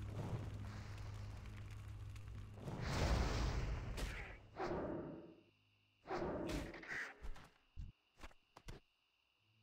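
Spells whoosh and burst in a video game fight.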